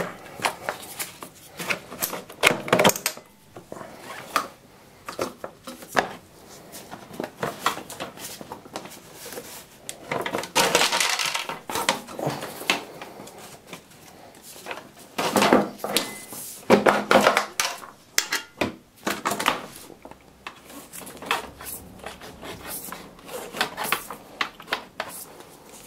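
Plastic parts knock and rattle as hands handle them up close.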